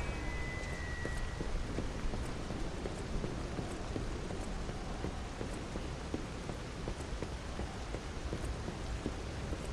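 Footsteps run across wooden boards.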